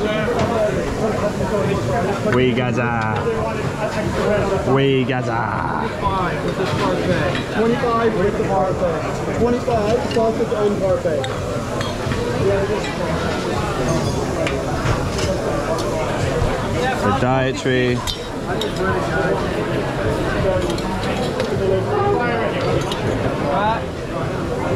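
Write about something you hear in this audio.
Many people chatter around a busy room.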